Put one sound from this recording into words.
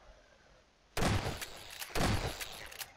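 A shotgun fires two loud, booming blasts.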